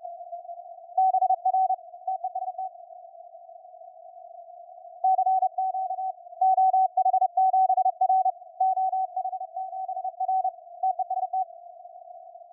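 Morse code beeps sound in short bursts through a radio receiver.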